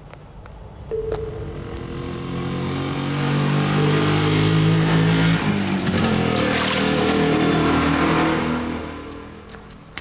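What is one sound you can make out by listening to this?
A motor scooter engine approaches, passes close by and fades away.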